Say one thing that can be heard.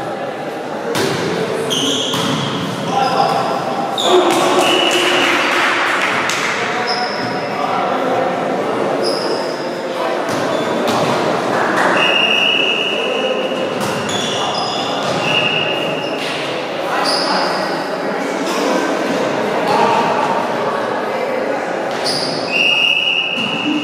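Teenage boys call out and shout during play.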